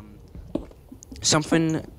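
A pickaxe chips at stone blocks.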